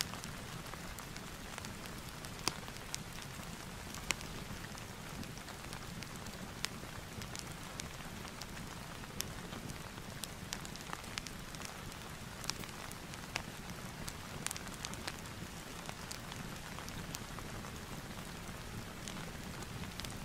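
Paper pages rustle as they are turned one after another.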